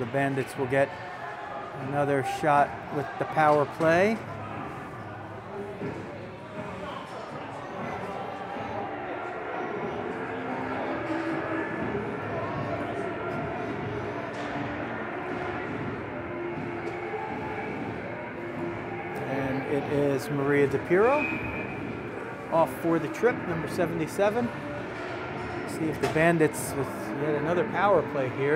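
Ice skates scrape and glide across ice in a large echoing rink.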